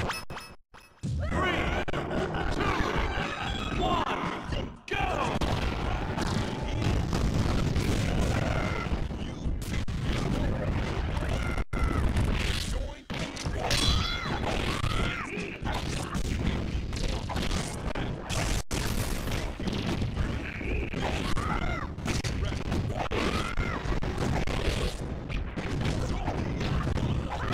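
Game characters shout and grunt during a fight.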